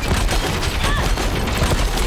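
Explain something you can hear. Metal clashes and sparks crackle as a weapon strikes a machine.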